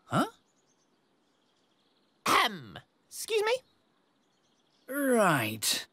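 A man speaks with animation, close by, in short bursts.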